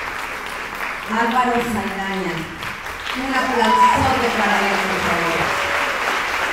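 A young woman speaks with animation into a microphone in a large echoing hall.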